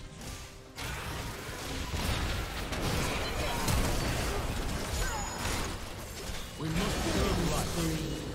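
Video game spell effects whoosh, crackle and burst during a battle.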